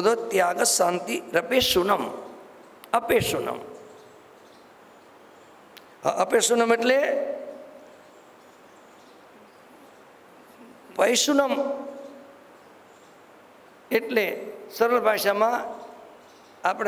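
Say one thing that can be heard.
An elderly man speaks slowly and calmly into a microphone, with long pauses, in a room with some echo.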